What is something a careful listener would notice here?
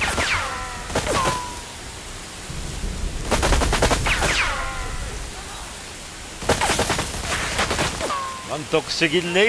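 Bullets ricochet with whining pings.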